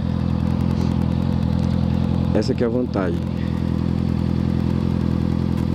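A motorcycle engine idles with a steady, deep rumble close by.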